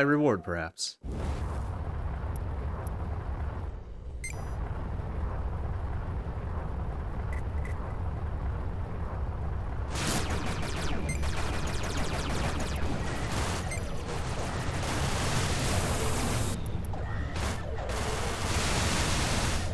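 A spaceship engine rumbles steadily in a game.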